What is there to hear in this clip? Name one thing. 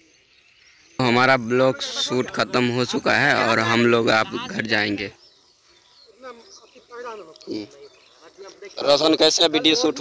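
Several men talk loudly close by, outdoors.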